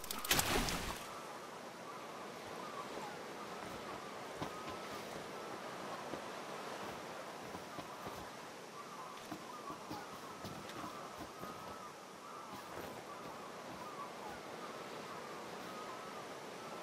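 Water sloshes softly as several men wade.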